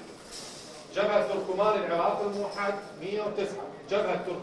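A man speaks clearly and formally over a microphone.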